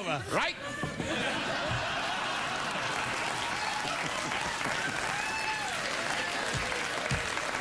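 A studio audience laughs and cheers loudly.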